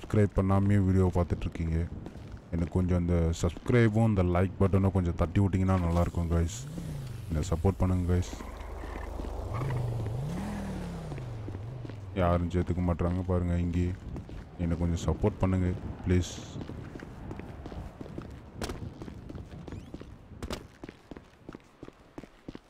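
Footsteps tap on a hard concrete floor.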